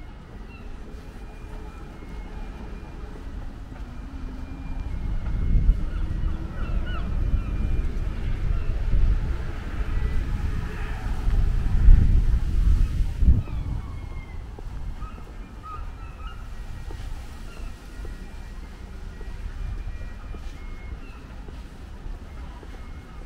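Wind rumbles and gusts outdoors, strongest for a while in the middle.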